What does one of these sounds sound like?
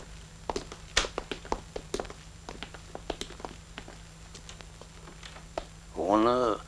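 Footsteps climb stairs.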